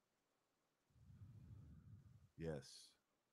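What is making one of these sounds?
A man breathes out slowly.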